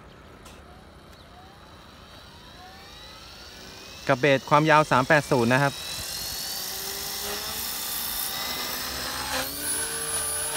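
A model helicopter's electric motor whines and rises in pitch as the rotor spins up.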